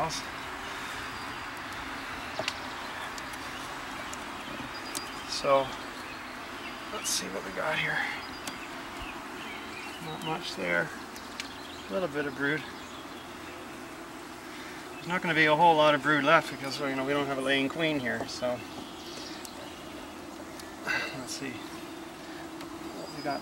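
Honeybees buzz steadily all around, close by.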